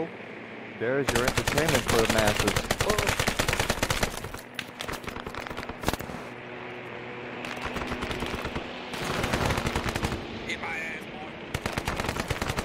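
Automatic rifles fire in rapid bursts.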